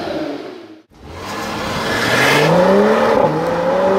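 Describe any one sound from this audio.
A car engine roars as the car accelerates away, rising in pitch.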